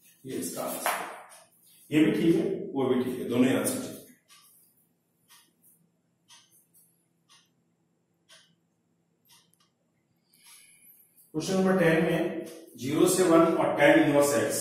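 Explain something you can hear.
A man speaks steadily nearby, explaining as if teaching a class.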